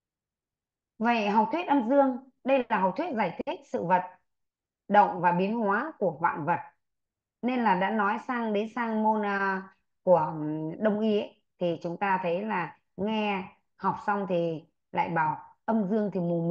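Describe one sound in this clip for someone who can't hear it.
A woman speaks steadily, as if lecturing, through an online call.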